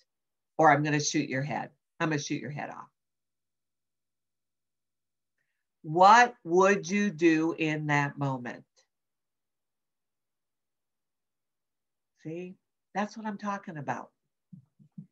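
An older woman speaks with animation into a microphone, in short bursts with pauses.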